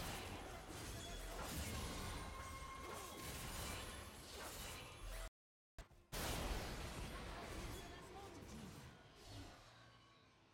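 Video game spell blasts and hits clash in a busy battle.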